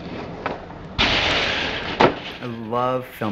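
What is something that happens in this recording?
A skateboard's wheels roll on concrete.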